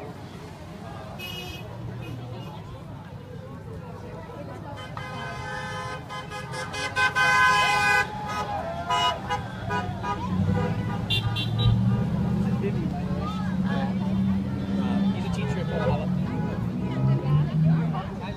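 A crowd of people chatters and calls out outdoors.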